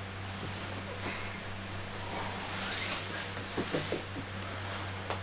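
Bedding rustles as a person sits up.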